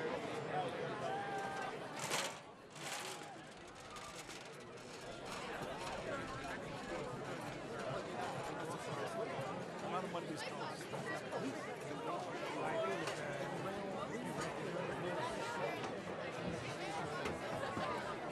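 A large crowd chatters in the stands outdoors.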